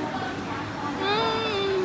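A young woman hums with delight while eating.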